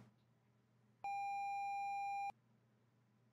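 A steady electronic beep sounds.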